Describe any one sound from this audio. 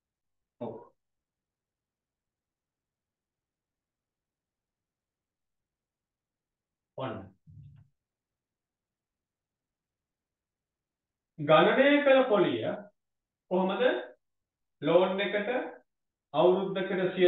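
A man speaks calmly into a microphone, explaining.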